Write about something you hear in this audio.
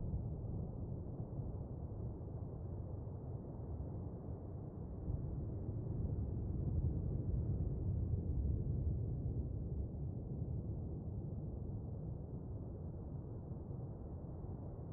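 A low, muffled underwater rumble drones steadily, swelling and easing slowly.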